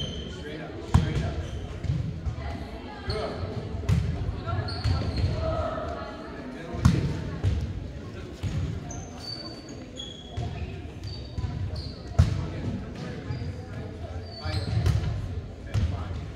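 A volleyball thuds as players hit it in a large echoing gym.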